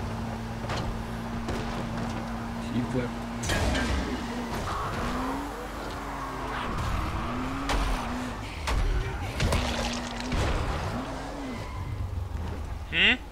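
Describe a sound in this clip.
A vehicle engine hums and revs while driving.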